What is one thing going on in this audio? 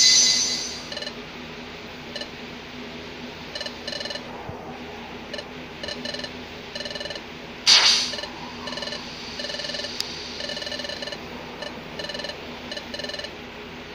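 Short electronic blips tick rapidly in bursts.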